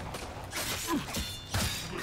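Footsteps clatter on metal stairs.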